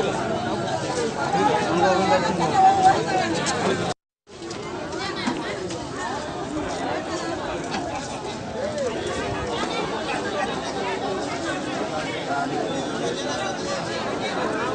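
A crowd of men and women murmurs and talks outdoors.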